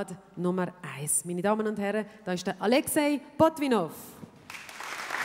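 A woman speaks warmly into a microphone, heard through loudspeakers in an echoing hall.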